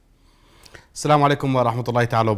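A man speaks calmly and clearly into a microphone close by.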